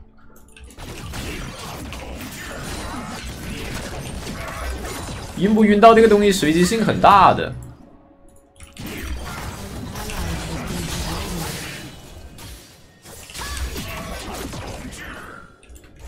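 Game sound effects of spells and hits play during a fight.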